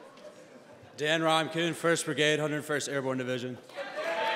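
A young man speaks loudly into a microphone in a large echoing hall.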